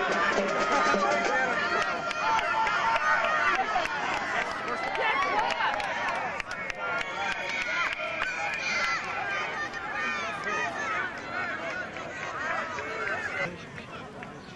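A crowd of young people cheers and shouts loudly outdoors.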